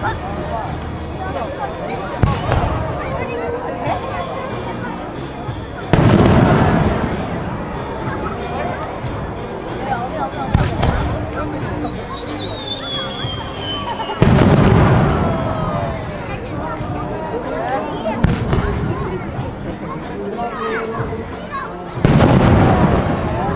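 A crowd chatters and murmurs throughout.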